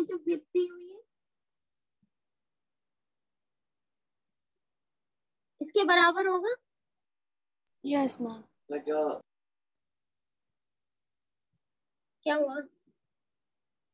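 A young woman speaks calmly in short phrases over an online call.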